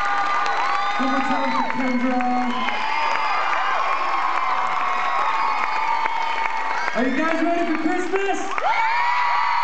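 A large crowd cheers and screams loudly throughout.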